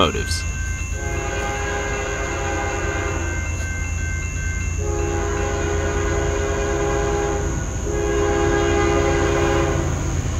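A train horn blows loud, long blasts close by.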